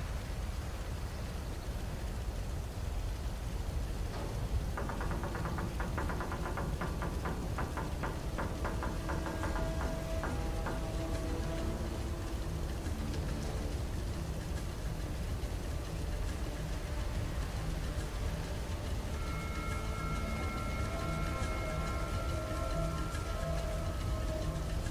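A small fire crackles and hisses steadily.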